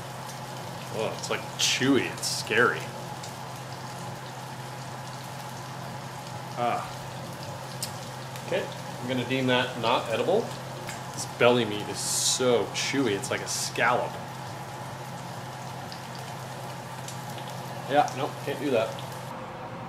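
A man talks casually, close by.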